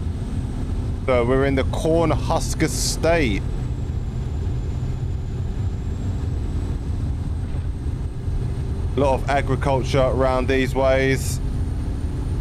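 A man talks through a microphone.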